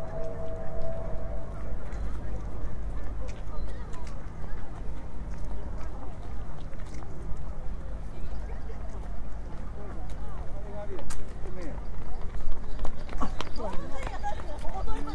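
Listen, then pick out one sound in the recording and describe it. Several people chat at a distance outdoors.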